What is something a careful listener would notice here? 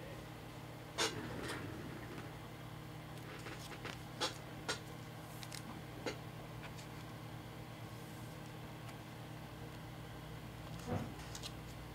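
Plastic card cases click and tap on a table.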